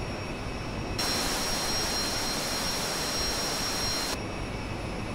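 A jet engine's whine grows suddenly louder and harsher, then drops back.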